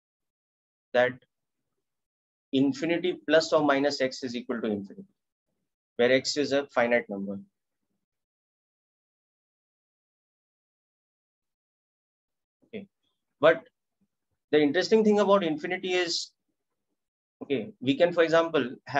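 A man explains calmly through a close microphone, in short bursts with pauses.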